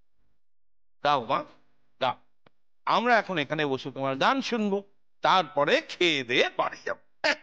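An older man speaks cheerfully nearby.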